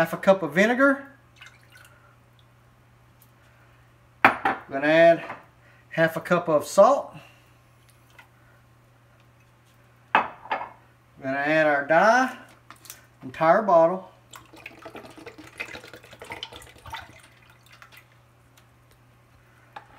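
Liquid pours and splashes into a pot of water.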